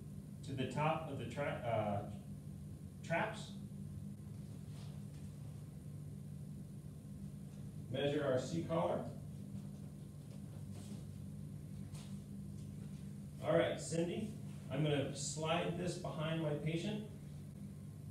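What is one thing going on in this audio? A man speaks calmly nearby in short bursts, giving instructions.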